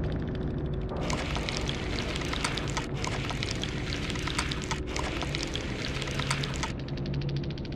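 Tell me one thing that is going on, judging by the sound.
Rapid ticking clicks run as a points tally counts up.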